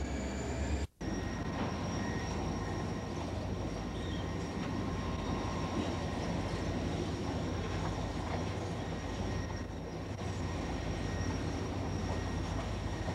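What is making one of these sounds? Freight cars clatter over the rails.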